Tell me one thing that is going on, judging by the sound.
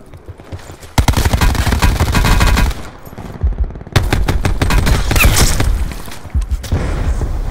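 A rapid-firing gun shoots in loud bursts.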